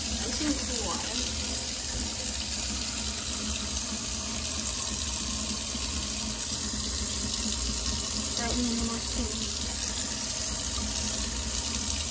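Water from a tap runs steadily and splashes into a metal sink.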